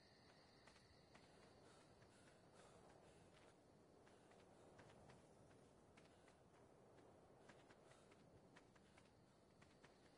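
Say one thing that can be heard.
Footsteps crunch softly over grass and dirt.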